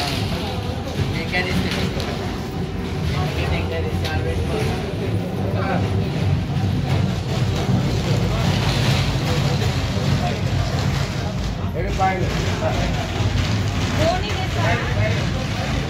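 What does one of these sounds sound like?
A crowd of men and women chatters nearby indoors.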